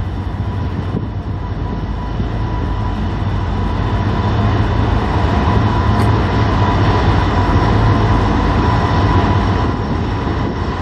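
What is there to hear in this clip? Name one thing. A diesel locomotive rumbles loudly as a freight train approaches.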